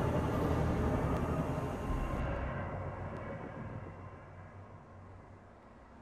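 Wind rushes past during a fall through the air and fades.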